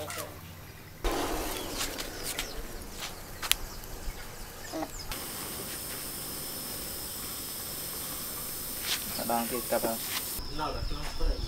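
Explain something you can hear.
Hot metal hisses and sizzles against green bamboo.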